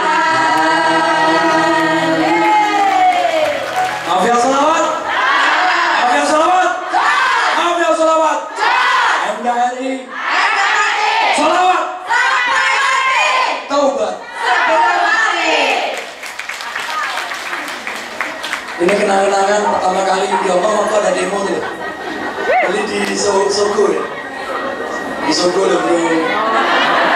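Music with singing plays loudly through loudspeakers in a large echoing hall.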